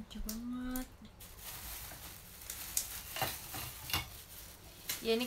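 Dried fish skin rustles and crinkles in a young woman's hands.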